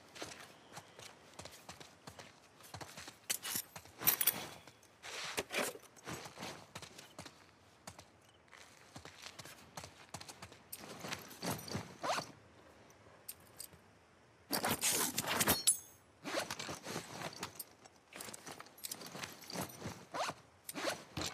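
Footsteps scuff softly on a hard floor.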